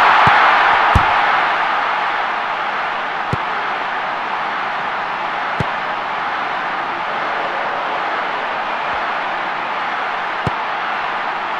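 A ball is kicked with dull thuds now and then.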